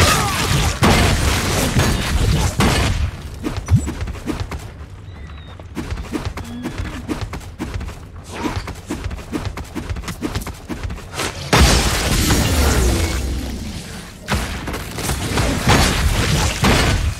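Magic spells crackle and burst in loud bursts of combat.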